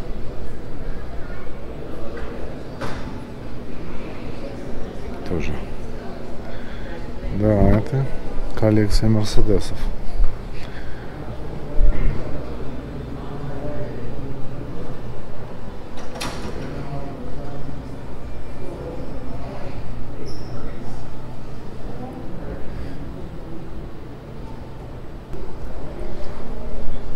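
People chat quietly in the background of a large echoing hall.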